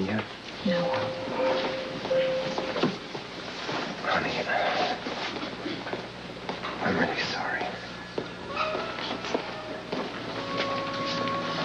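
A young woman speaks emotionally close by.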